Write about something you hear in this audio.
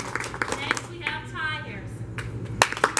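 A woman speaks cheerfully.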